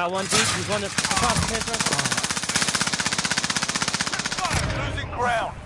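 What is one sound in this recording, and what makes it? A submachine gun fires a long rapid burst.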